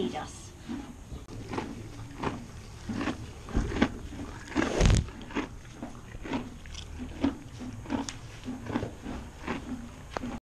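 A horse munches hay with steady crunching bites.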